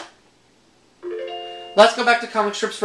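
An electronic chime plays for a correct answer in a video game.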